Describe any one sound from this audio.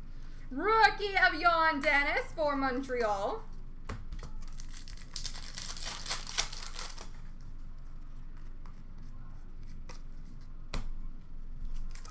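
Plastic card cases click and rustle as hands handle them.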